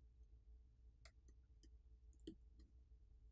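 A small metal tool clicks softly against a tiny part.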